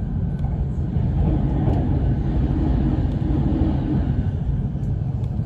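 Another train rushes past close by with a loud whoosh.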